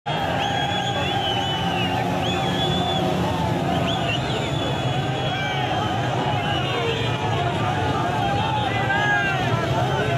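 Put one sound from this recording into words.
Car horns honk among the crowd.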